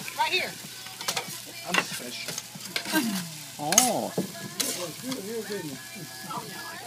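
A metal spatula scrapes and clatters on a hot griddle.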